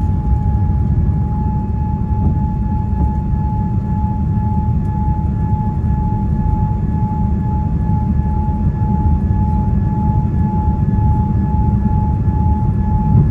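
Jet engines roar steadily with a low rumble inside an airliner cabin.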